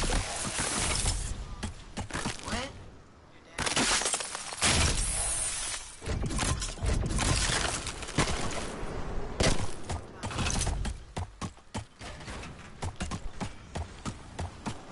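Building pieces clack and thud in quick bursts.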